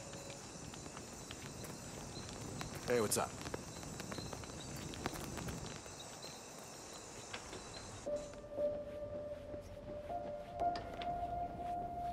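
Footsteps walk steadily over hard ground.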